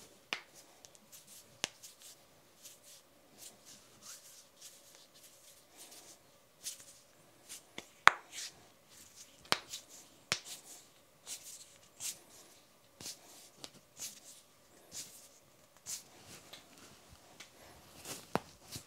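Knuckles crack sharply a few times.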